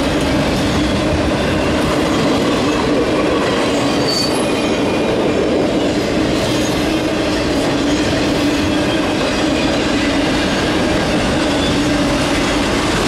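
Freight cars rumble and clatter steadily past on the rails.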